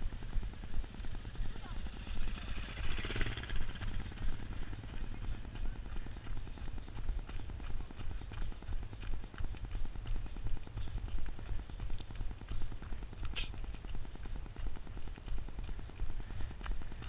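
Footsteps run quickly and steadily over gravel close by.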